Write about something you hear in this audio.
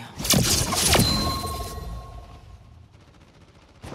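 A bright victory chime rings out and fades.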